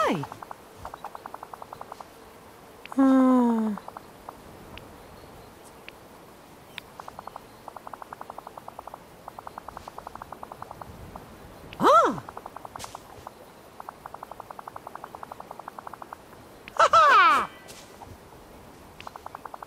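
Rapid soft blips chatter in quick bursts.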